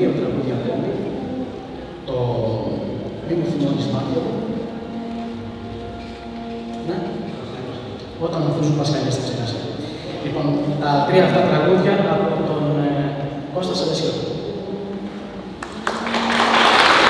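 A man sings through a microphone and loudspeakers in a large hall.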